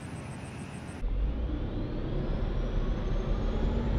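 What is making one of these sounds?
A vehicle engine roars from inside the cab while driving.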